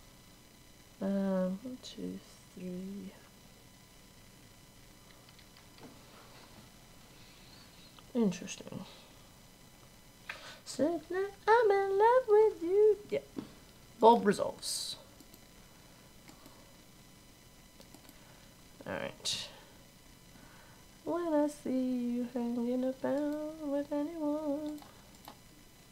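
A young woman talks casually into a close microphone, in bursts with pauses.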